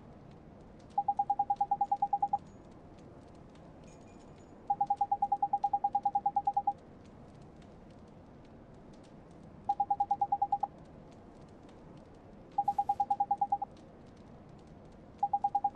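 Quick high beeps chatter in rapid bursts as game dialogue text is typed out.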